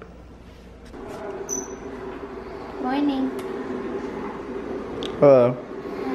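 A young woman talks softly to a baby.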